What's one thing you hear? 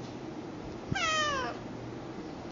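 A cat meows once with a falling cry.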